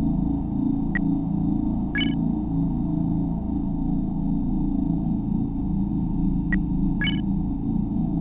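Short bright blips sound as a menu opens and selections are made.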